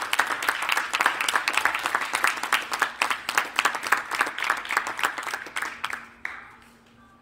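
A steel drum band plays a bright, ringing tune that stops abruptly.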